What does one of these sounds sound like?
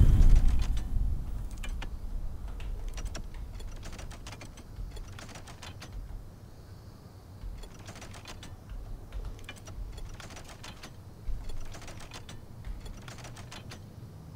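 Metal tiles click and clatter as they slide and turn into place.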